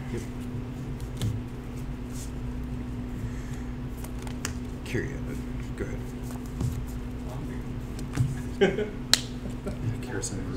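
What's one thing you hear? Playing cards tap and slide on a soft mat close by.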